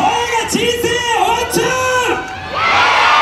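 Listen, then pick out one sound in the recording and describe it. A woman sings loudly through a microphone and loudspeakers.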